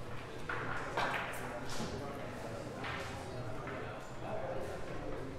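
Billiard balls clack together and knock against the cushions.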